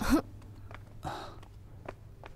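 A man cries out in alarm nearby.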